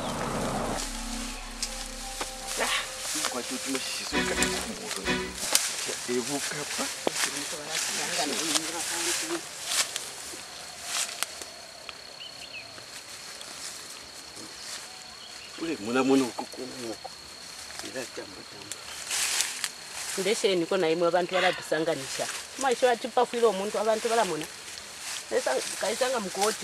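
Dry grass and leaves rustle and crackle as someone moves through them.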